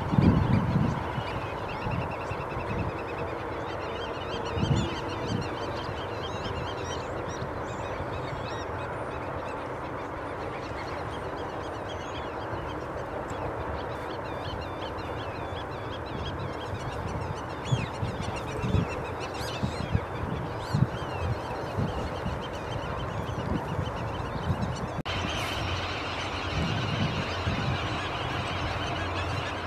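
A wading bird probes softly in shallow water.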